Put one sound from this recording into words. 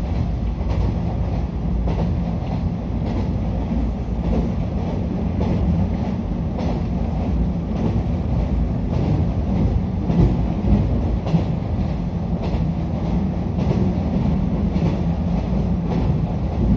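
A train rumbles steadily along the tracks at speed.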